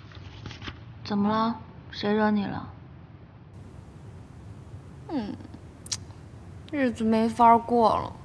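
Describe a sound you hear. A young woman speaks in an upset voice.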